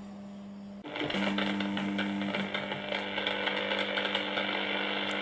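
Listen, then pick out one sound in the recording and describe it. A portable radio crackles with static.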